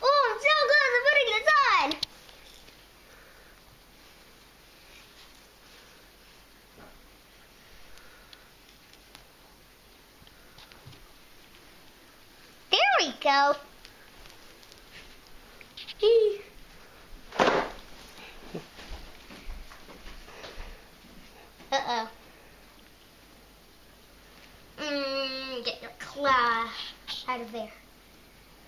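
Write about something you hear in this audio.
A young girl talks nearby in short bursts.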